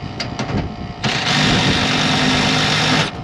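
A cordless drill whirs as it backs out a screw.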